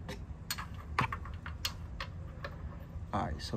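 A metal tool clicks and taps against metal parts.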